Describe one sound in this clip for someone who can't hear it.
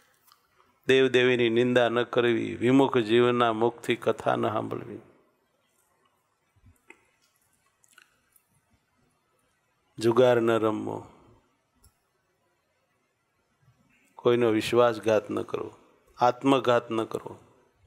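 A middle-aged man speaks calmly into a close microphone, pausing between phrases.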